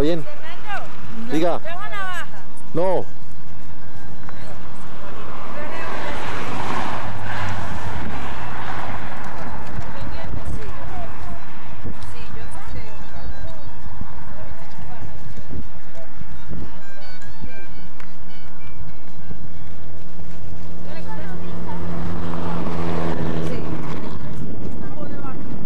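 Several men and women chat nearby outdoors.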